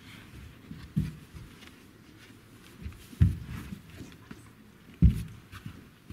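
Heavy padded mats thump down onto the floor.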